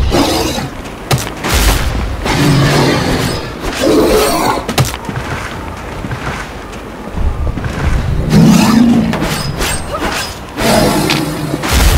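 Metal blades slash and strike in a fight.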